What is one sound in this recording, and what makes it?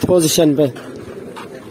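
A young man talks loudly close by, outdoors.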